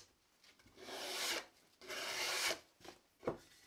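Sandpaper rubs briskly against wood.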